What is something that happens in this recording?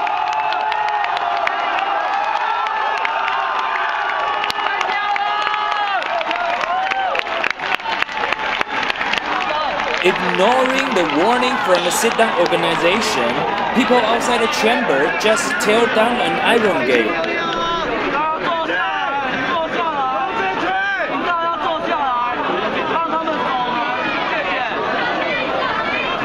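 A large outdoor crowd chants and shouts loudly.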